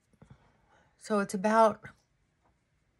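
A middle-aged woman lets out a loud, drawn-out exclamation close by.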